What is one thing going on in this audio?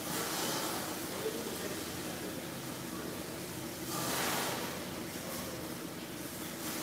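A pressure washer hisses, spraying water in a large echoing shed.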